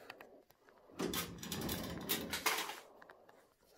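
A metal filing drawer slides open with a rattle.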